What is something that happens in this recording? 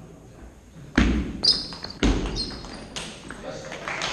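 A table tennis ball clicks sharply off paddles and the table in an echoing hall.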